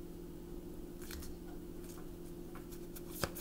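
Cards riffle and tap together as a deck is shuffled.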